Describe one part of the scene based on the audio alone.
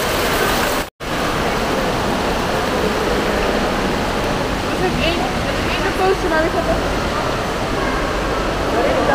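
Voices of people murmur in a large echoing hall.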